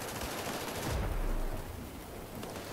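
Explosions boom in the distance.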